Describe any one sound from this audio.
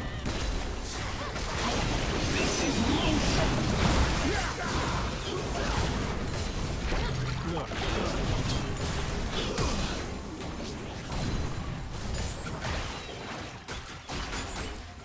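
Magical blasts and whooshes crackle during a fast fantasy battle.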